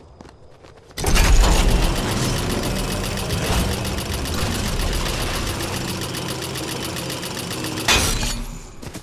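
A zipline whirs and rattles with a rushing wind.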